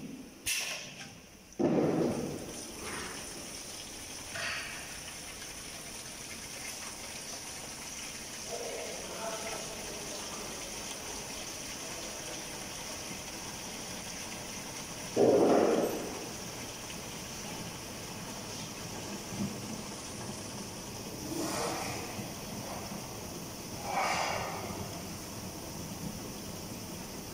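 Liquid pours into plastic jugs.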